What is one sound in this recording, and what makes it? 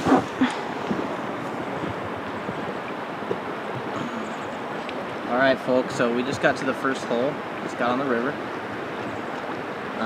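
River water laps and splashes gently against a boat.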